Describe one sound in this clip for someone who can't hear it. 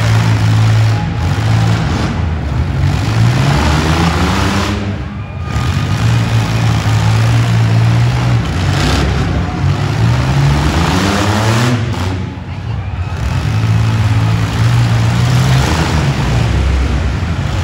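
Car engines roar and rev loudly, rising and falling in pitch.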